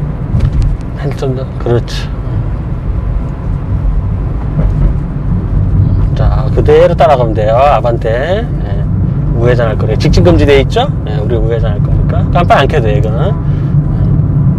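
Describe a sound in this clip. A middle-aged man talks calmly inside the car, close by.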